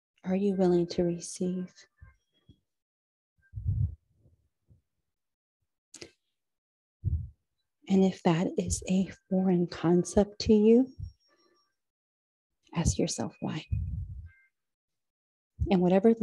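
A woman speaks calmly and slowly, close to a microphone.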